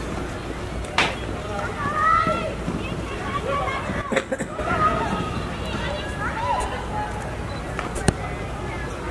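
Hockey sticks smack a ball with sharp cracks.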